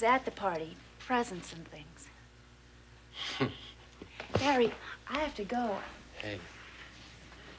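A young woman speaks softly and earnestly, close by.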